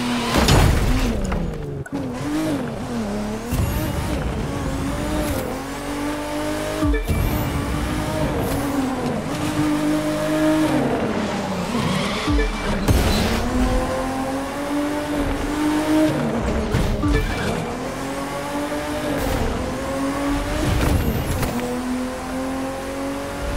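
A car engine roars and revs up and down through gear changes.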